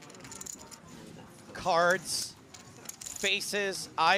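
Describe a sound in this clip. Poker chips click together as a hand shuffles a stack.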